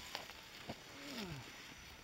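An electric radio-controlled rock crawler whirs as it climbs over rock.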